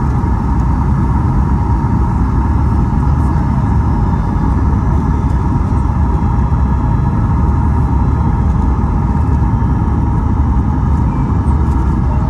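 A turbofan jet engine roars steadily, heard from inside the cabin of an airliner on approach.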